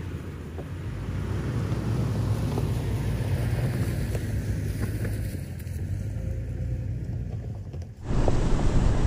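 An engine rumbles as a vehicle drives slowly past.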